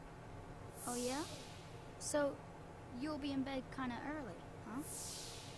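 A young boy speaks questioningly.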